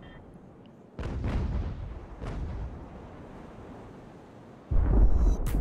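Cannons fire in heavy booms, one after another.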